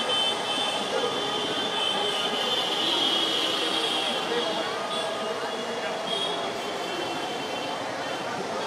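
A crowd cheers and chants outdoors.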